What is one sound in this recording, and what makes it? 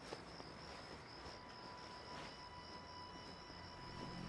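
A man's footsteps scuff on wet pavement.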